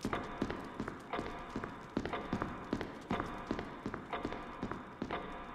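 Footsteps tap quickly and steadily on a hard floor in a large echoing room.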